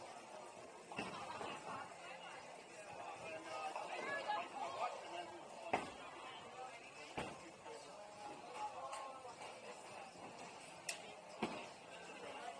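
Bowling pins clatter as balls strike them.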